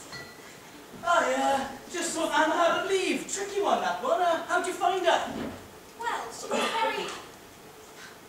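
A young man speaks with animation, echoing in a large hall.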